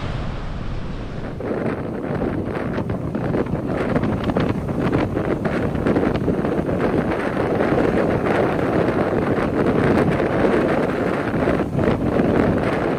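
Strong wind gusts roar loudly outdoors.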